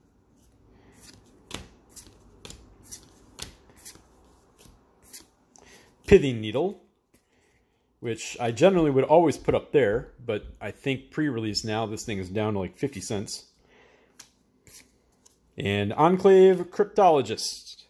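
Playing cards click and rustle as they are handled close by.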